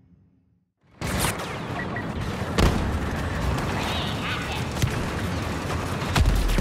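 Blaster shots zap and crack in quick bursts.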